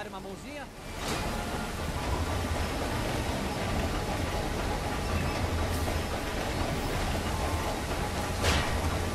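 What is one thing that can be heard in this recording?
A train rumbles past close by.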